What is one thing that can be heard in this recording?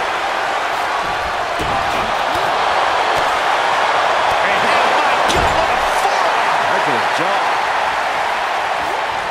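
A large crowd roars and cheers steadily in a big echoing arena.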